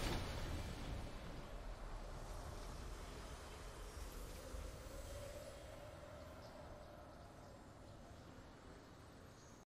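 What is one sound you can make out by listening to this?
A triumphant game fanfare swells and slowly fades away.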